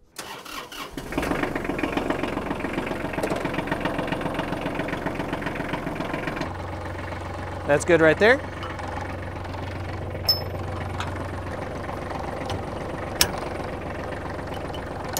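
A tractor engine starts and runs with a steady rumble.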